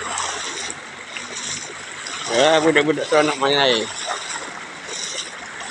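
People wade through shallow floodwater, splashing.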